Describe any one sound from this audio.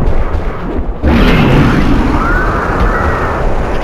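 An electric crackle bursts out loudly.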